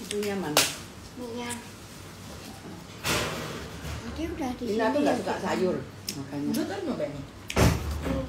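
A woman chews and smacks her lips close by.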